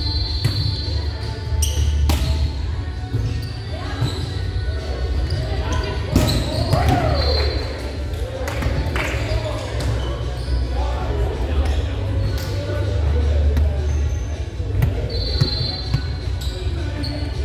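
A volleyball thumps off hands and arms in a large echoing gym.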